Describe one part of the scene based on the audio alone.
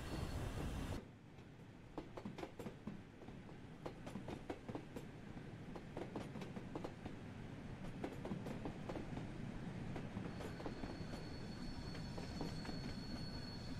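Train wheels click and clack over the rails as carriages roll past.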